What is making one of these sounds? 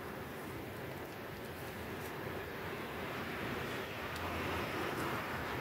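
A tube of lotion squelches as it is squeezed.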